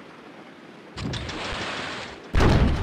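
A glass orb lowers from above with a whooshing rush.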